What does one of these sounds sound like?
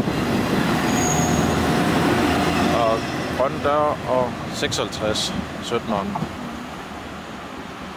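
A train rumbles past close by on the tracks and fades.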